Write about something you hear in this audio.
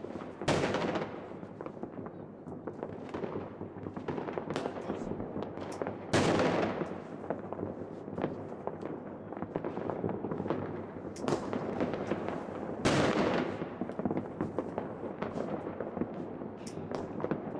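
Fireworks crackle and pop rapidly.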